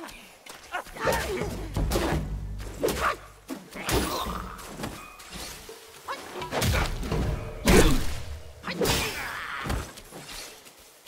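A wooden staff whooshes through the air in quick swings.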